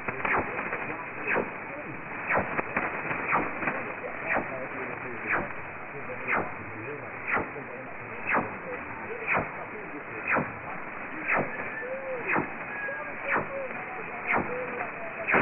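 Sharp ticks sound from the radio about once a second.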